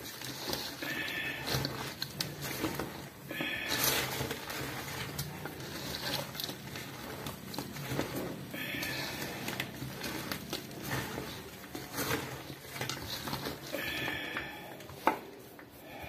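Hands squelch and rustle through a pile of wet leaves.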